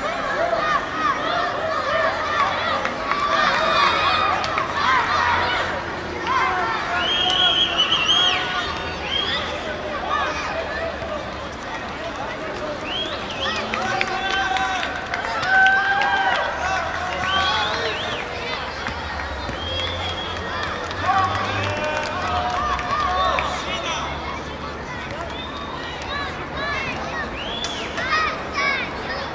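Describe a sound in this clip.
A crowd of spectators chatters and calls out outdoors, a little way off.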